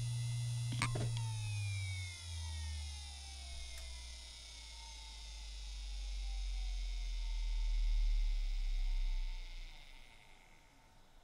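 A hard drive spins down with a slowly falling whine that fades away.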